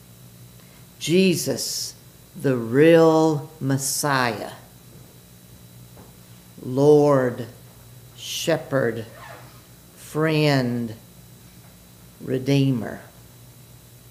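An elderly man speaks slowly and calmly through a microphone in an echoing hall.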